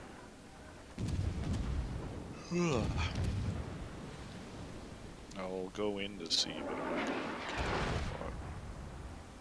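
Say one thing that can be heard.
Heavy guns fire with deep, rumbling booms.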